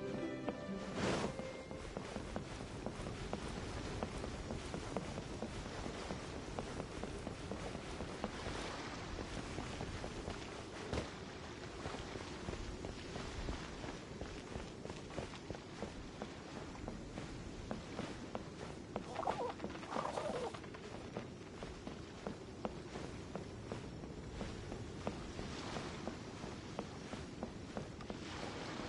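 Quick footsteps tap on hard ground.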